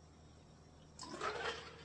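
A man breathes out heavily after drinking.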